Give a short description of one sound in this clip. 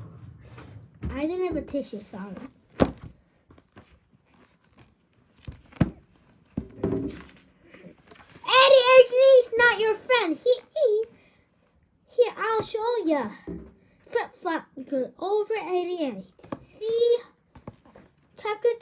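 A young boy talks with animation close to the microphone.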